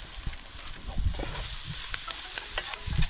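A spoon scrapes and stirs food in a metal pot.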